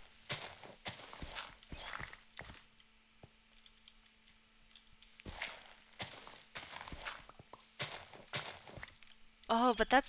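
A shovel digs into dirt with crunchy scraping bursts.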